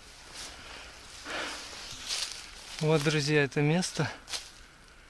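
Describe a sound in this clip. Footsteps crunch through dry grass and leaves.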